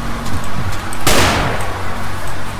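A pistol fires a single loud shot that rings out briefly.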